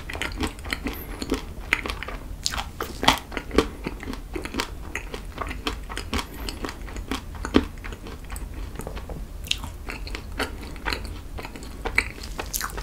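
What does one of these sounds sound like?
A young man smacks his lips close to a microphone.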